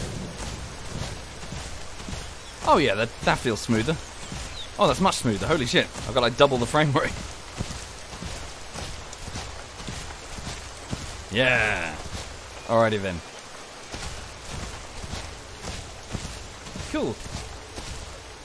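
A large animal's heavy footsteps thud softly on grass.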